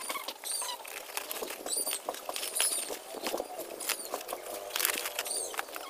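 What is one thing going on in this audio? Dry twigs rustle and snap as they are handled.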